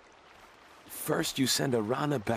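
A man speaks with strain, close by.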